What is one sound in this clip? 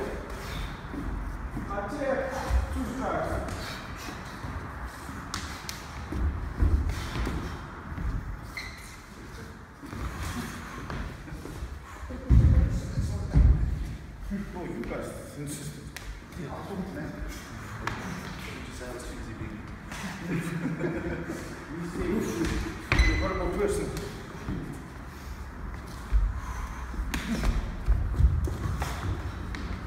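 Shoes shuffle and thud on a wooden floor.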